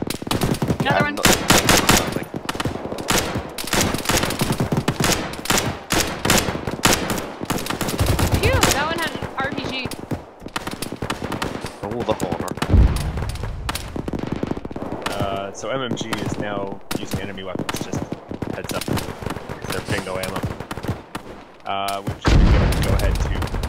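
Rapid gunfire cracks and echoes close by.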